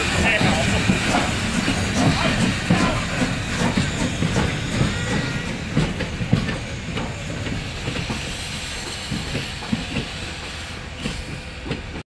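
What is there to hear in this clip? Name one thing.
A steam locomotive chuffs as it pulls away.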